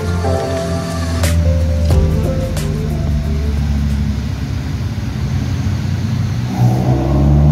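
A car engine idles with a deep, lumpy rumble.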